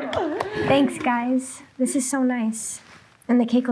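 A young woman says thanks, laughing.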